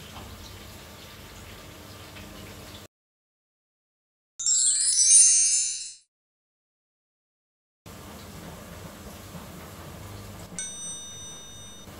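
A spatula scrapes a frying pan.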